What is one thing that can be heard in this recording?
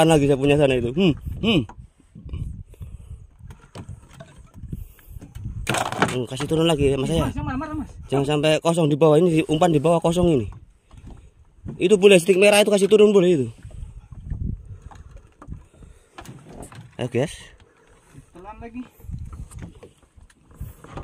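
Water laps gently against a small boat's hull.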